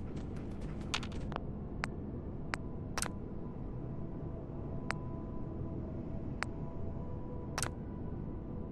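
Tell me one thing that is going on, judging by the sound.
Short electronic menu clicks sound one after another.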